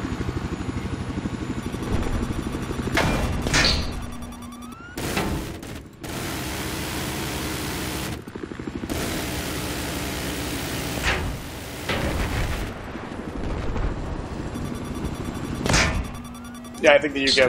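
A helicopter's rotor thumps steadily close by.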